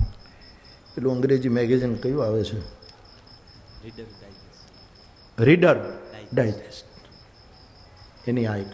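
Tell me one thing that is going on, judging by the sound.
An elderly man speaks with feeling into a microphone, in short bursts with pauses.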